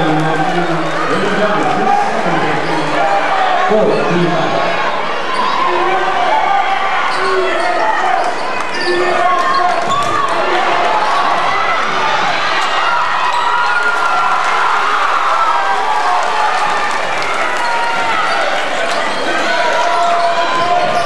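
A crowd in a large echoing gym cheers and chatters throughout.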